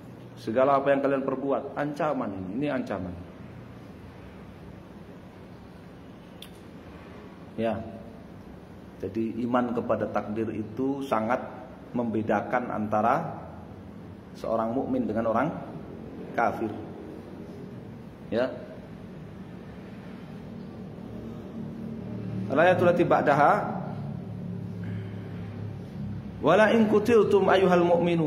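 A man speaks calmly and slowly into a nearby microphone, in bursts with pauses.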